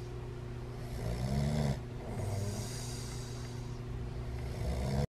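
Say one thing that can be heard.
A young man snores loudly close by.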